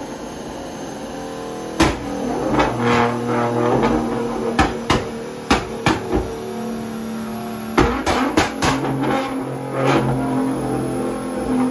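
A sports car engine revs hard and roars loudly.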